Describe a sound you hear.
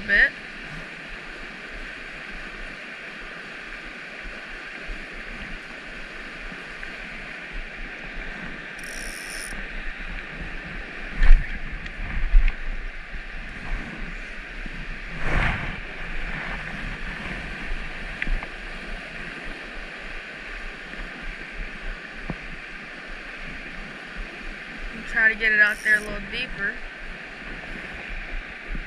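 A stream rushes and splashes steadily over rocks nearby.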